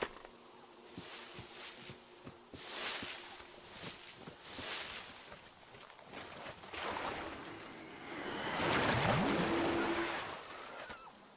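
Dry reeds rustle and swish as someone pushes through them.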